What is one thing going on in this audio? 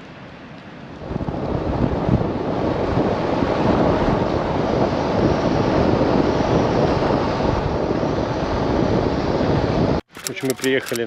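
Wind rushes past as a vehicle drives along a gravel road.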